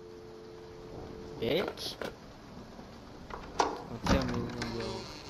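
A telephone handset is set back down with a clatter.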